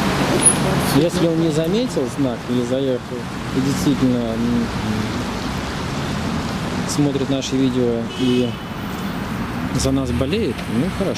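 A boy speaks nearby in a casual voice.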